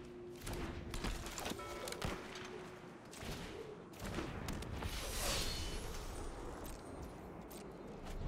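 Game sound effects chime and whoosh as cards are played.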